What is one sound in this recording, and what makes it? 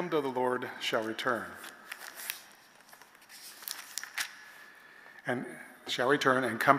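An elderly man speaks calmly into a microphone in a large echoing room.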